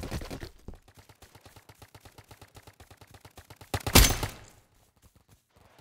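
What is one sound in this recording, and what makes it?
A toy blaster fires rapid bursts of shots.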